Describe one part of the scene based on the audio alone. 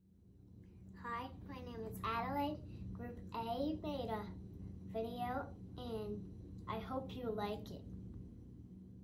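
A young girl speaks slowly and clearly, close by.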